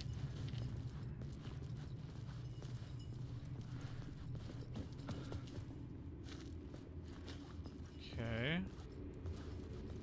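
Footsteps crunch slowly over debris on a hard floor.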